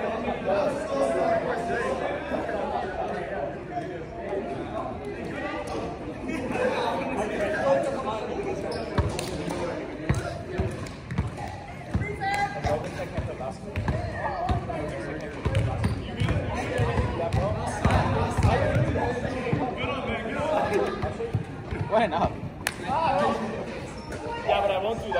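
Young men and women talk and call out across a large echoing gym.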